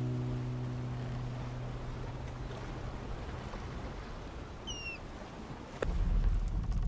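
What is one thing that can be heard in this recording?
Gentle sea waves lap softly.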